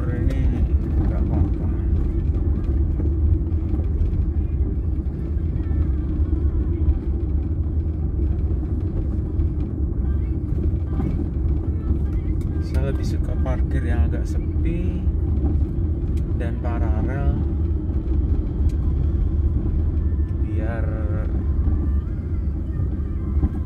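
A vehicle engine rumbles low and steady while driving slowly.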